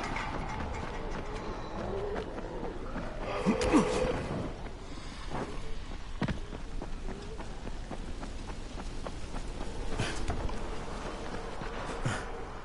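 Footsteps run quickly along a road.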